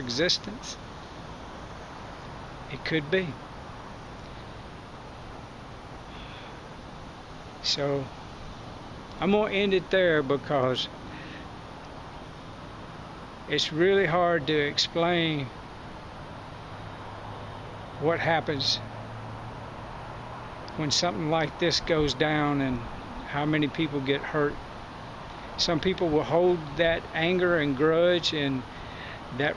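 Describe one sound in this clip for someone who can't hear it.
A middle-aged man talks calmly and close up, pausing often.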